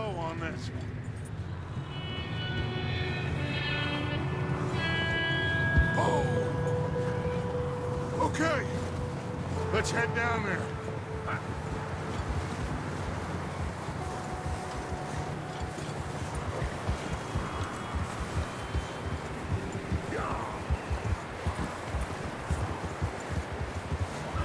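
Horse hooves crunch steadily through deep snow.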